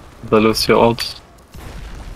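A young man speaks with animation into a close headset microphone.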